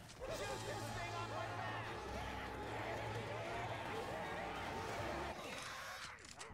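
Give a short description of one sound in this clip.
Zombies growl and snarl close by.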